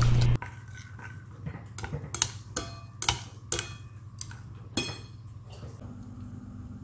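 Chopsticks clink against a ceramic bowl.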